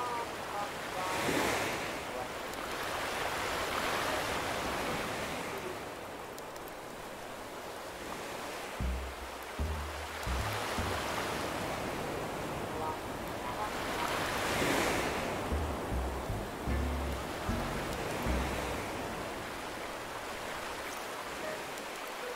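Waves wash gently onto a shore in slow swells.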